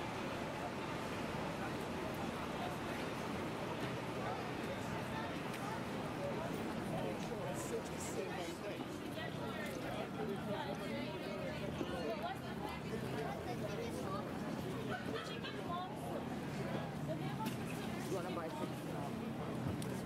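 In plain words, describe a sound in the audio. A crowd of people chatters in a busy street.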